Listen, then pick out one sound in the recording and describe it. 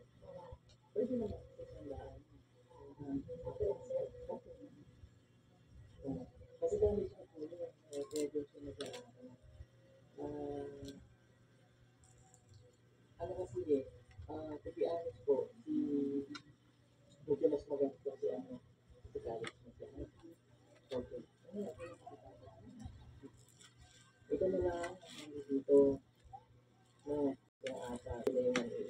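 Fingers pick and scrape at food on a plate close by.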